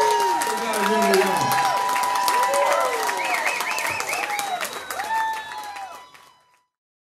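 A live band plays music.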